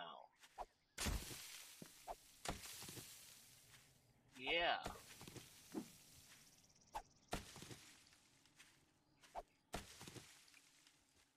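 A stone axe swings and thuds into leafy plants, again and again.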